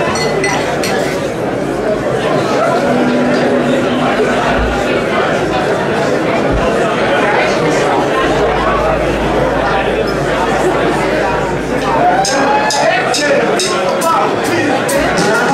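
A rock band plays loudly with electric guitars and drums.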